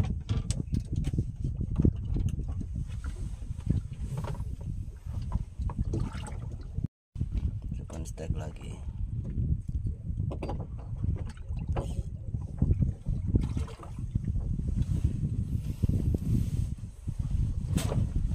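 Wind blusters over open water.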